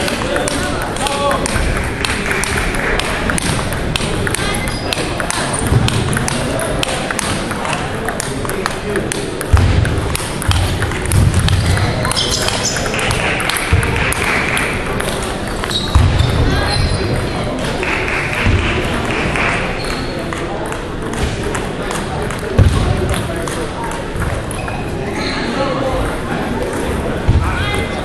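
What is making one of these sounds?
A ping pong ball clicks back and forth off paddles and a table in an echoing hall.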